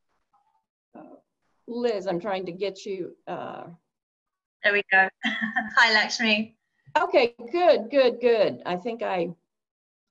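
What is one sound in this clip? A woman speaks with animation, heard through an online call.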